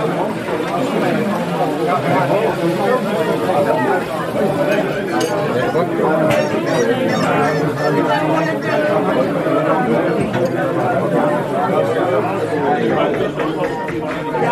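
Many adults chatter at once in a busy, crowded room.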